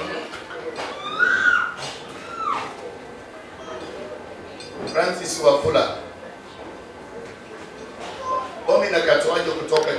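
A man preaches with animation into a microphone, heard through loudspeakers.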